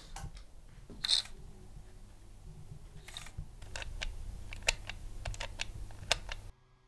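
Plastic clicks and taps as a toy is handled.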